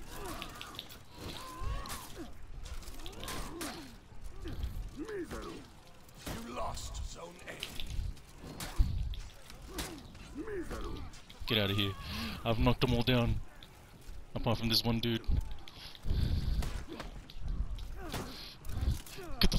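Swords clash and clang in a close fight.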